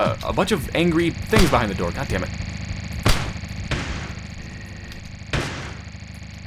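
A gun fires sharp single shots.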